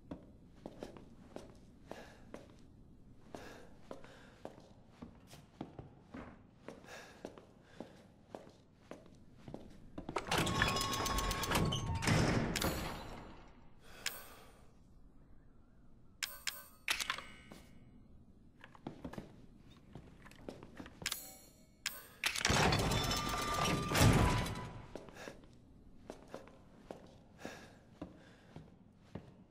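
Footsteps thud steadily across a wooden floor.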